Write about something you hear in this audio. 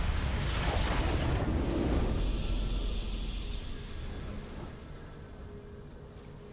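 A victory fanfare swells and fades.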